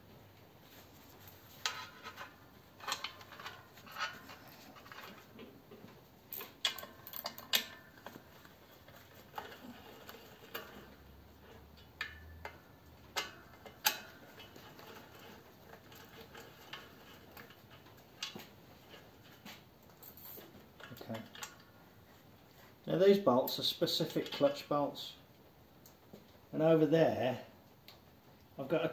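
Metal tools clink against a metal housing.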